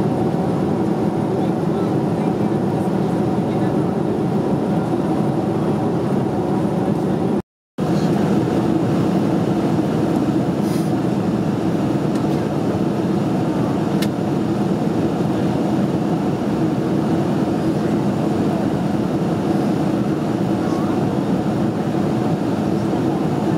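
Jet engines roar with a steady, low drone.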